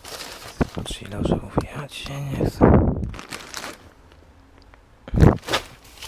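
Plastic bags of nuts crackle as they are handled.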